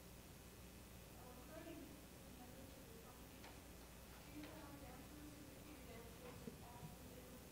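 A woman speaks quietly on a stage in a large hall.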